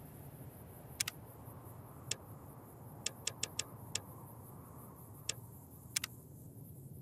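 Menu clicks tick sharply, one after another.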